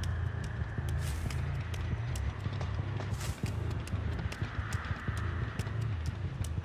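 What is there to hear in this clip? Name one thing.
Heavy footsteps thud quickly and evenly on pavement.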